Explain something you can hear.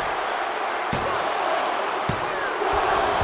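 A hand slaps the mat several times.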